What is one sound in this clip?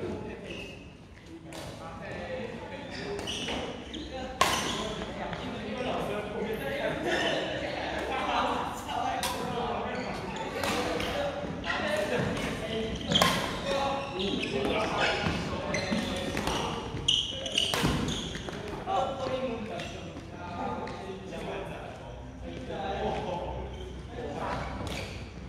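Shuttlecocks are struck with sharp pops of badminton rackets in a large echoing hall.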